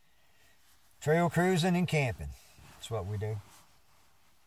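An elderly man speaks calmly and close by.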